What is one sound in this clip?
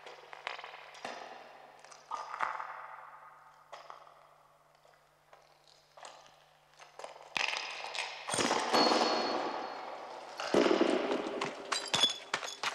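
Footsteps crunch on rubble, echoing in a tunnel.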